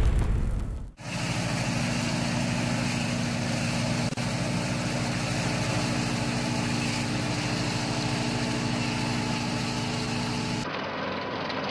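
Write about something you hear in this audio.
A harvester cuts and rattles through dry bean stalks.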